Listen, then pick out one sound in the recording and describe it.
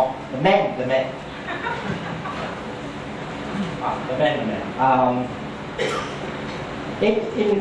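A man speaks calmly through a microphone and loudspeakers.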